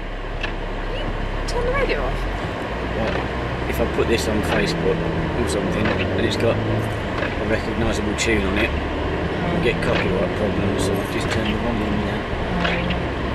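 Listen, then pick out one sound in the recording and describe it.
A middle-aged woman talks close by.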